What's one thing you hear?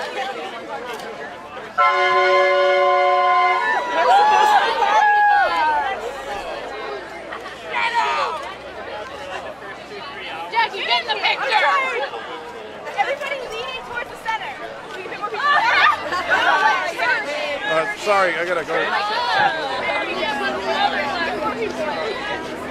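Young people chatter and laugh close by, outdoors.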